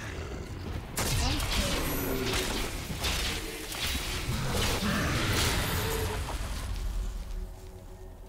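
Loud blows and blasts of a fight crash and rumble.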